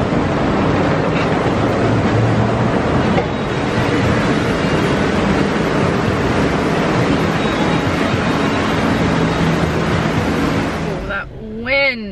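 A monorail train rumbles past loudly overhead.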